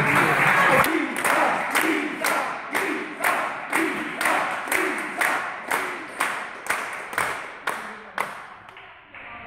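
A table tennis ball clicks back and forth off paddles and the table in a quick, steady rally.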